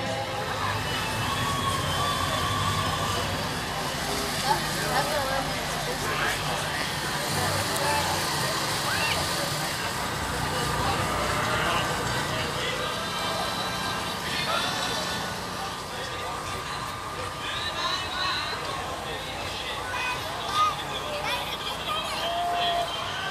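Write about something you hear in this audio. A crowd of men and women chats in the distance outdoors.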